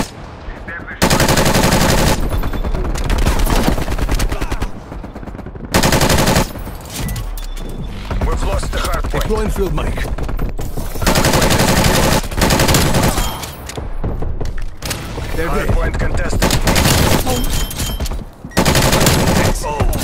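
Rapid gunfire rattles in loud bursts.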